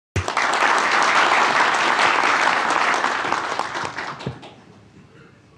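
A crowd applauds in a room.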